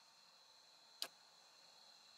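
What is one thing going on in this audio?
A single soft click sounds.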